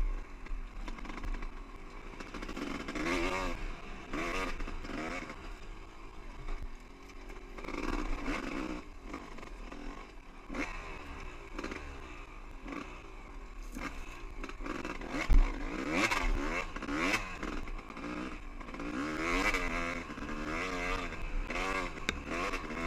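Tyres crunch and bump over rocky ground.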